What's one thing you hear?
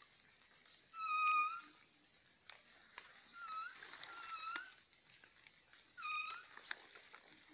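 A bird whistles loud, rising calls nearby.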